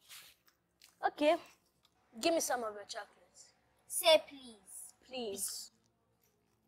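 An older girl talks with animation close by.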